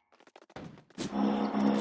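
An electric charge crackles and buzzes.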